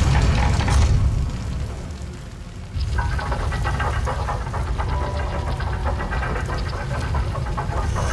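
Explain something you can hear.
Heavy gears grind and rumble low and steadily.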